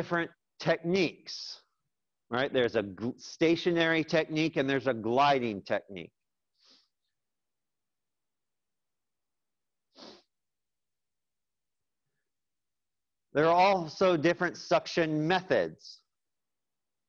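A young man speaks calmly into a microphone in pauses.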